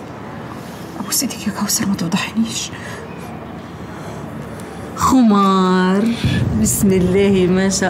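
An older woman speaks close by with feeling.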